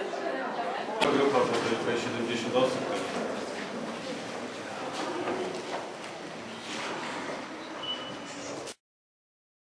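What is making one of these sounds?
A large group of men and women sings together in an echoing room.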